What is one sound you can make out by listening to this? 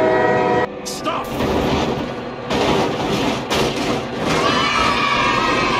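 Two trains collide with a loud metallic crash.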